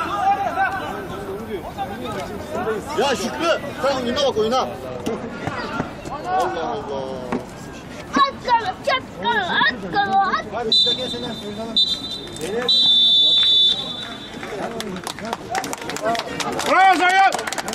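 Men shout and call out loudly across an outdoor pitch.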